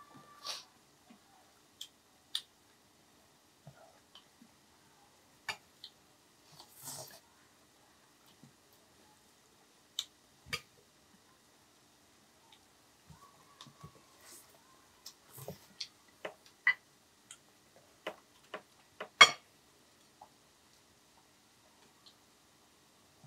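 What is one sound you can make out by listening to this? Chopsticks click and tap against a plate.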